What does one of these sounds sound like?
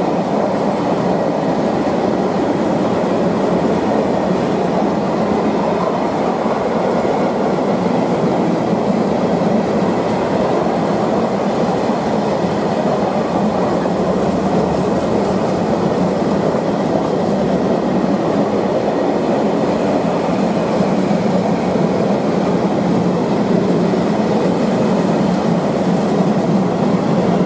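Steel wheels clatter over rail joints.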